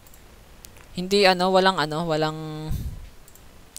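A young man speaks briefly into a microphone, drawing out a word.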